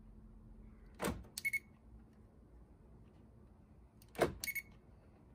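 An electronic tester gives short beeps.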